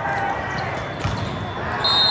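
A volleyball is struck with a sharp smack.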